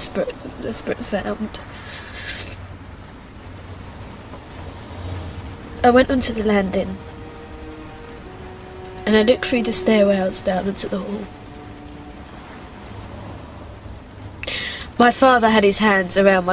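A young woman speaks softly and tearfully, close by.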